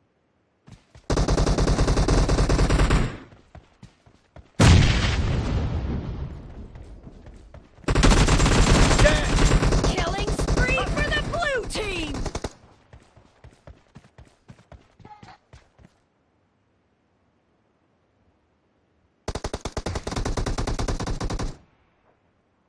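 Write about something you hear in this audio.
Rapid bursts of rifle gunfire ring out.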